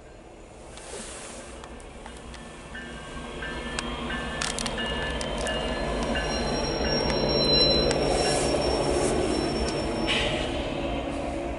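A diesel locomotive engine roars as it passes close by.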